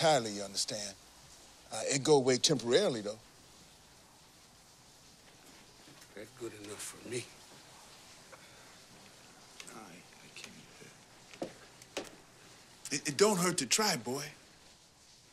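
An elderly man speaks in a low, calm voice close by.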